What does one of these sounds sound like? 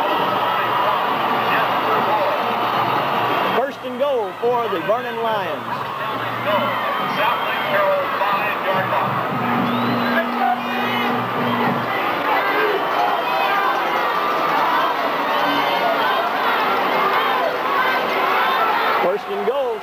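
A large crowd cheers and shouts outdoors.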